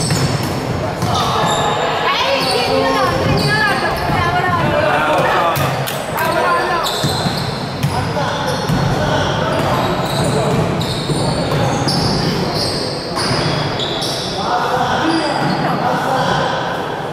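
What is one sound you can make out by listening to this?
Young men shout during play in a large echoing hall.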